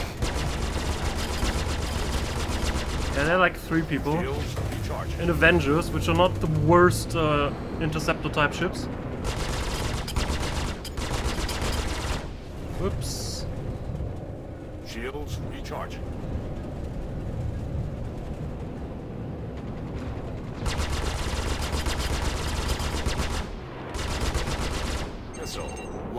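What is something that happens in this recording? A spacecraft engine hums low and steady.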